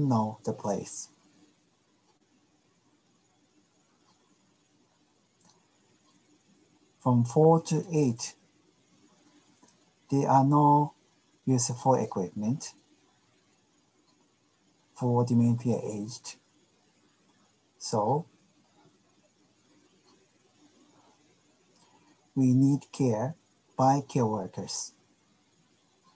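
A middle-aged man speaks calmly through a microphone, in short phrases with pauses.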